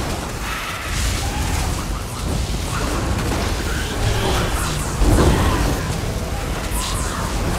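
Electric spells crackle and zap loudly.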